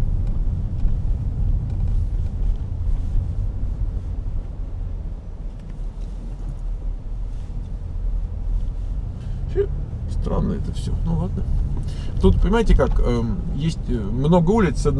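A car engine rumbles low and steady from inside the car as it drives.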